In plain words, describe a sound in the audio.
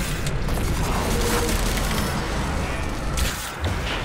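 An explosion bursts with a crackling boom.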